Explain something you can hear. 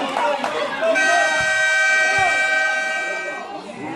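A basketball bounces on a hard court.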